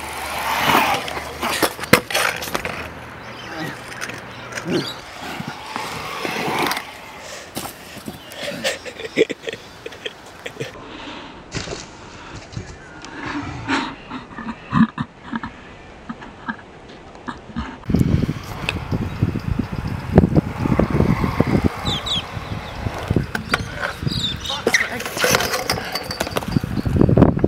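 A scooter clatters as it lands on concrete.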